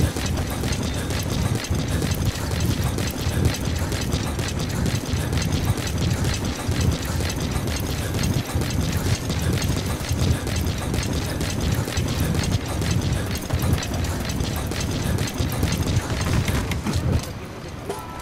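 Footsteps thud quickly on gravel as someone runs.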